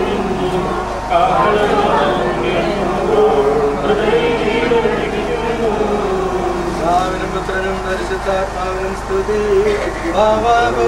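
A group of men and women sings a slow hymn together.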